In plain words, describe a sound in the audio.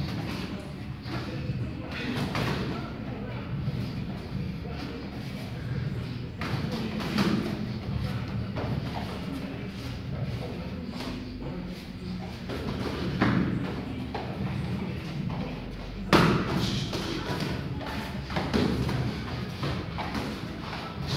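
Gloved punches smack against pads.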